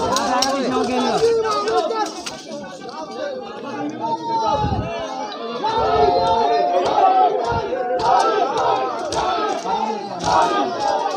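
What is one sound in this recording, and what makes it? Men beat their bare chests with their hands in rhythm.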